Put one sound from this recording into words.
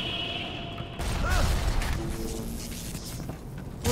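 Electricity crackles and zaps sharply.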